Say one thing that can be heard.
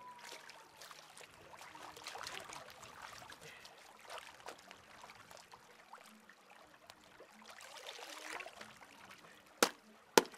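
Wet cloth splashes and swishes in shallow water.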